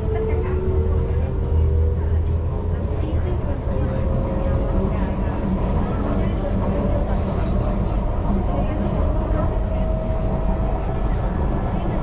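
A train's motor whines with a gliding pitch.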